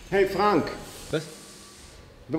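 A man answers briefly.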